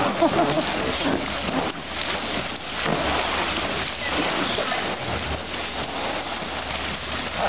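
Water splashes and sloshes as a baby elephant rolls in a small pool.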